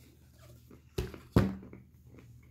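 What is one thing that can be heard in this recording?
A hand bumps and knocks against a nearby microphone twice.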